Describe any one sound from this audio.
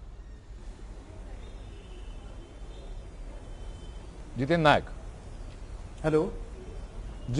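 A man speaks calmly through a microphone, heard as a broadcast.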